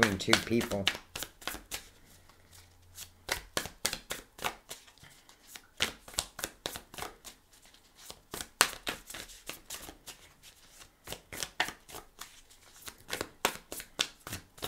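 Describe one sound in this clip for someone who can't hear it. Playing cards are shuffled with quick, crisp flicks.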